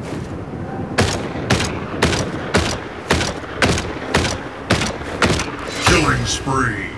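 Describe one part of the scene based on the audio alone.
Rapid gunshots fire in quick bursts.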